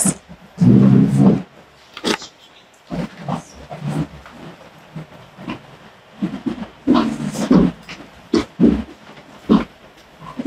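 Chairs scrape and clatter as they are moved.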